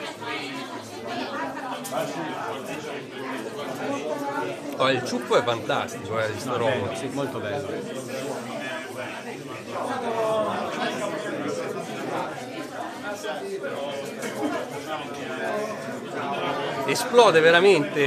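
A crowd of people chatter in the background.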